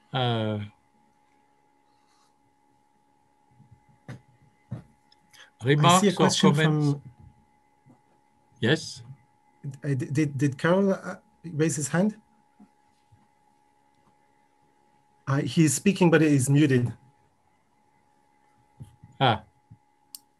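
An elderly man speaks calmly in short phrases through an online call, with pauses.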